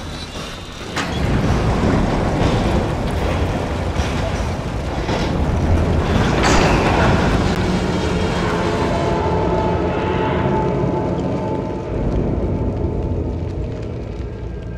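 Water rushes and bubbles with a deep rumble.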